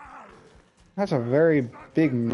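A zombie groans and growls close by.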